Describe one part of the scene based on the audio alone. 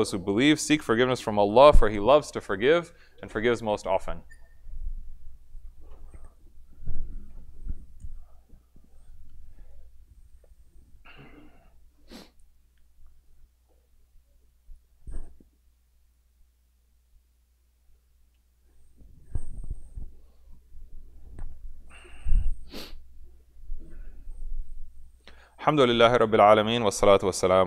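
A middle-aged man speaks calmly into a microphone, with long pauses.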